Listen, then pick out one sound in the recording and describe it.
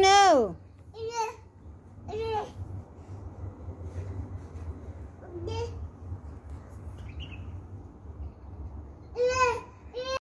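A toddler squeals and babbles close by in short bursts.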